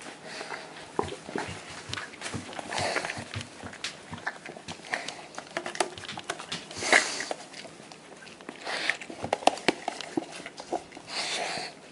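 A dog licks and laps noisily at a plastic cup.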